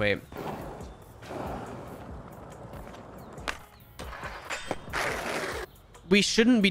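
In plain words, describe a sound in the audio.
Skateboard wheels roll over smooth concrete.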